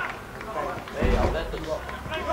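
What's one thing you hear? A football is kicked with a dull thump.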